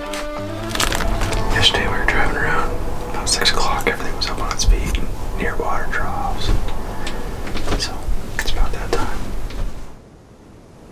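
A man talks calmly, close to the microphone.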